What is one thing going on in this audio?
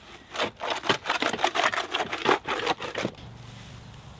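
A spade digs and scrapes through wet mud.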